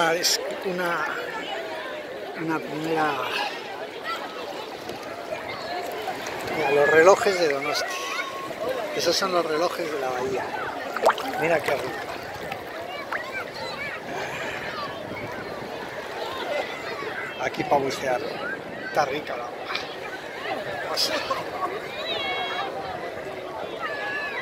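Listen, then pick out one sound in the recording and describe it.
Many voices of a beach crowd chatter and shout outdoors, some nearby and some distant.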